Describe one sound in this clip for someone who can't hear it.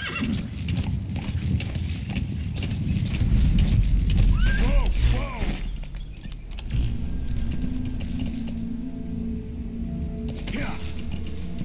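Horse hooves thud steadily on a dirt track.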